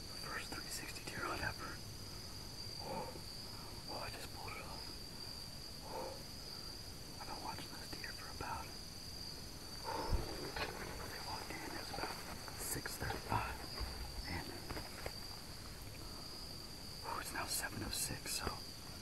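A young man speaks quietly in a low voice close by.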